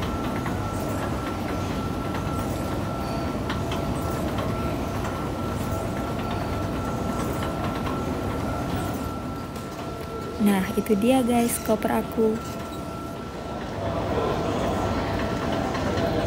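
A baggage conveyor belt rumbles and clatters steadily.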